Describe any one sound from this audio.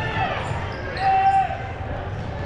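A referee blows a short whistle blast.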